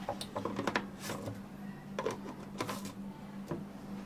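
Plastic lids click onto cups.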